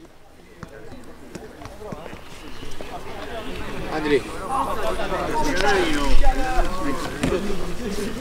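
Several men talk over each other at a distance.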